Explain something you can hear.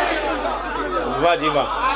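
A man speaks with emotion through a microphone.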